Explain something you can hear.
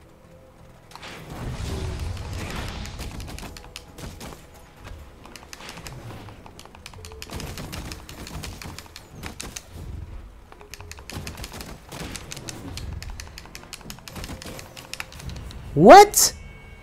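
Punches and blows thud and crack in a fight.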